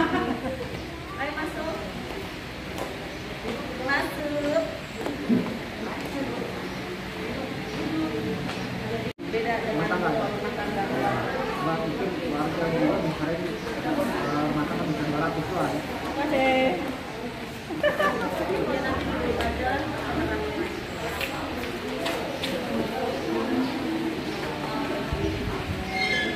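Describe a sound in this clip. A woman talks up close, muffled by a mask.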